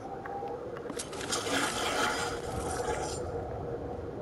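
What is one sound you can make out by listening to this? Ammunition rattles as it is picked up.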